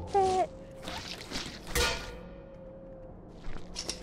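A metal bucket clatters onto a hard floor.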